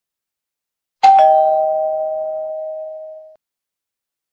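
A doorbell rings with two chimes that fade away.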